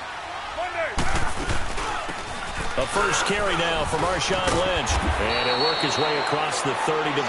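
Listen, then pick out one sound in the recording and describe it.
Football players' pads clash in a tackle.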